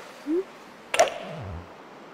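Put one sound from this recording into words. A golf club strikes a ball with a sharp whack.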